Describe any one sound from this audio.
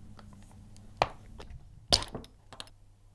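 A plastic part snaps off with a sharp clack.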